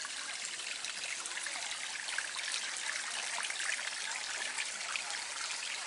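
Water trickles softly into a small pond.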